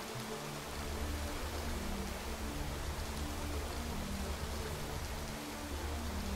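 Water splashes steadily down a small waterfall.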